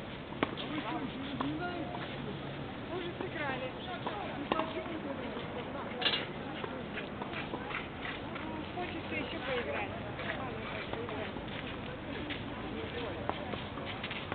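A tennis ball is struck with a racket, with sharp pops outdoors.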